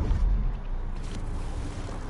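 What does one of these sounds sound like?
Footsteps patter quickly on dirt.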